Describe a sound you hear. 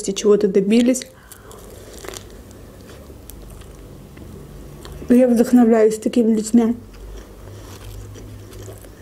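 A young woman chews food with soft, wet mouth sounds.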